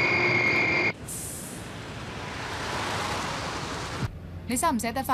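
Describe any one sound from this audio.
A car drives past on a road.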